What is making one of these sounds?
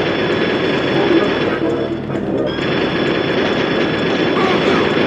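A rapid-fire gun shoots in fast bursts.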